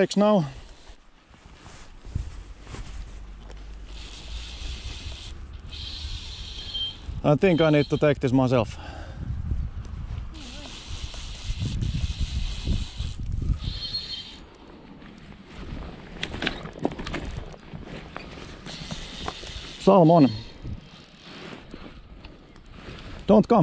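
A fishing reel clicks and whirs as line is pulled or wound.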